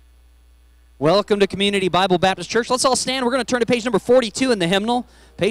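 A man speaks through a microphone over loudspeakers in a large hall.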